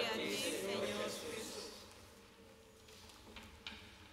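Pages of a book rustle as they turn.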